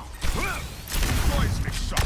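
A loud electric energy blast whooshes.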